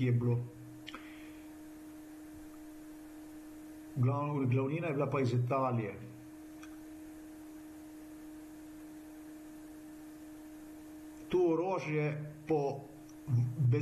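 A man speaks calmly, close to a microphone, heard through an online call, with pauses.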